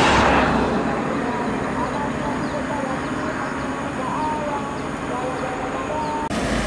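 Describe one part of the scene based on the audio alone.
A heavy truck engine hums in the distance.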